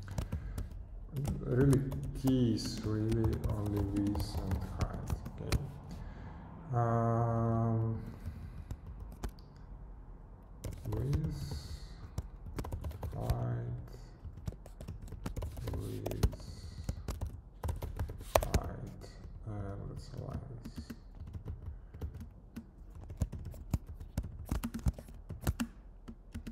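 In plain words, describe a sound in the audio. Keys clatter on a keyboard.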